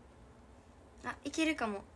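A young woman speaks close by, brightly and with animation.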